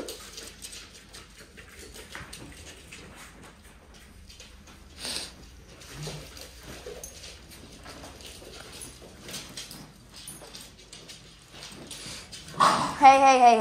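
Dogs scuffle and patter on a hard floor.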